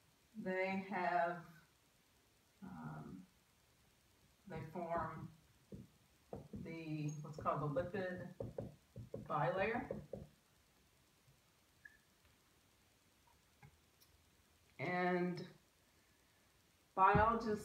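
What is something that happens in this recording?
A woman speaks calmly, as if explaining, close by.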